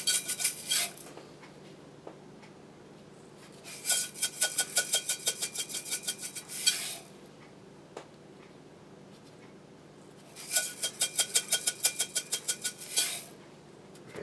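A metal shaker rattles quickly in short bursts.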